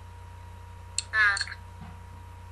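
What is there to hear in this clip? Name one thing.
A baby babbles briefly through an online call.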